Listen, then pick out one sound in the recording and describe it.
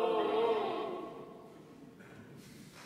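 A choir sings a sustained final chord that rings out and fades in a large, echoing hall.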